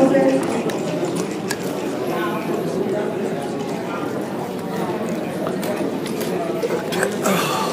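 Game pieces click against a wooden board.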